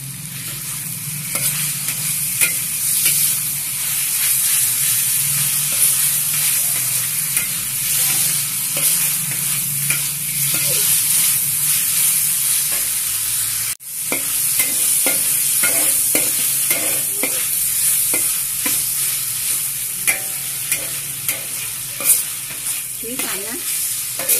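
Meat sizzles steadily in hot oil.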